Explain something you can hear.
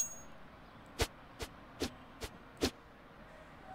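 A knife swishes through the air several times.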